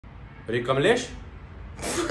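A young man speaks casually up close.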